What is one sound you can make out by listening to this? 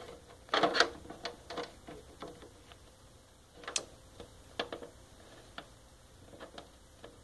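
Small plastic toy figures tap and clack against a plastic shelf.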